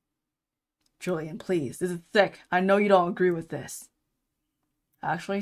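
A young woman reads out lines with animation, close to a microphone.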